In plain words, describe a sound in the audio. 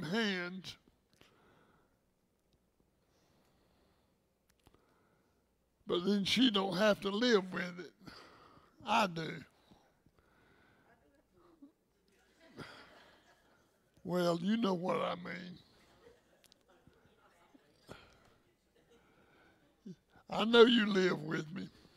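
An elderly man speaks with animation through a microphone, pausing often.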